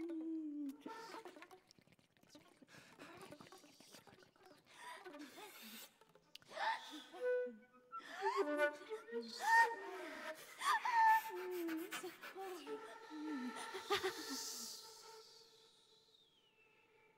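A flute plays soft, breathy phrases.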